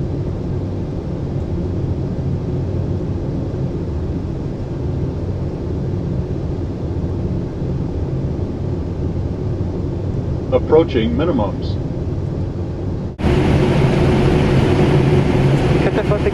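Jet engines drone steadily with a low rumble.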